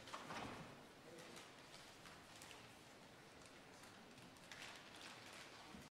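Papers rustle in a quiet, echoing hall.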